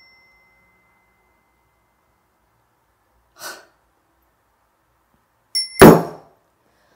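A small bell rings with a clear tone that slowly fades.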